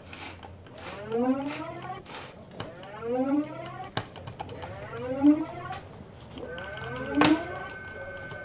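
An old computer gives quick rising electronic chirps.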